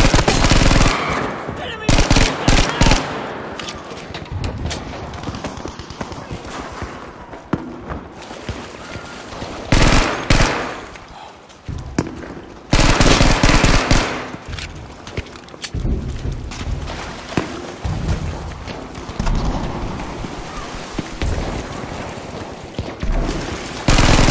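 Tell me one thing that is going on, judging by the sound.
Rapid gunfire bursts loudly in short volleys.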